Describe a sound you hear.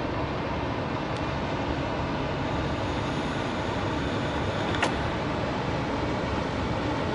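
A wide river rushes and churns steadily.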